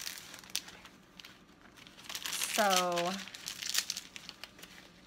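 Plastic film crinkles and rustles as it is peeled back.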